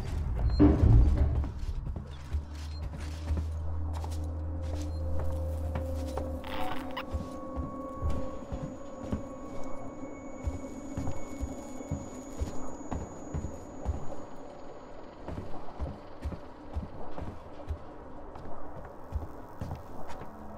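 Footsteps thud steadily on a metal floor.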